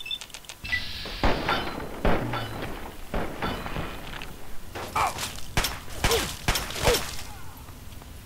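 Gunshots fire in quick bursts, ringing in a hard, echoing space.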